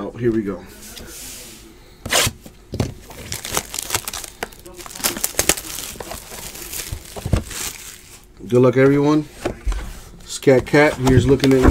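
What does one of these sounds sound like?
A cardboard box scrapes and taps as hands turn it over.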